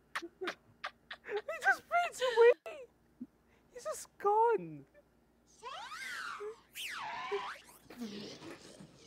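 A woman shrieks high, wavering calls into a microphone.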